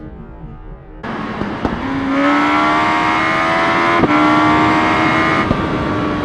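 A motorcycle engine revs high and steady.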